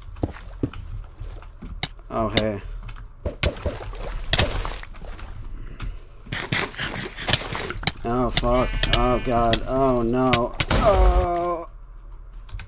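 Sharp sword hits land again and again in quick succession.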